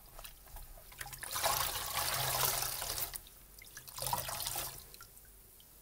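Gloved hands squeeze a wet, foamy sponge, making squelching and crackling sounds.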